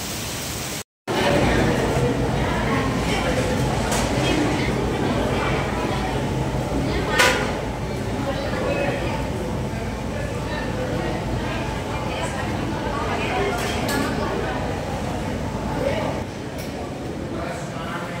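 A crowd of children and adults chatters in a large echoing hall.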